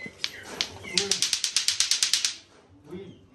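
Plastic clacker balls knock together in a fast, rapid rhythm.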